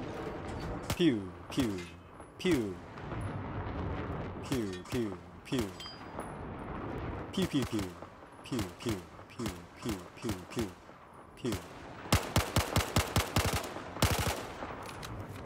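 A rifle fires rapid single shots.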